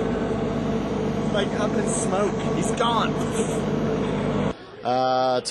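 A young man talks with animation close by, outdoors.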